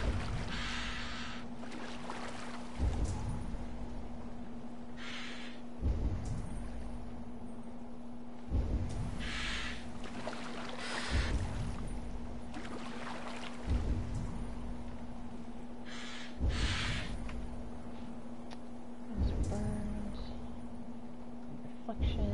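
An oar splashes and pulls through the water in regular strokes.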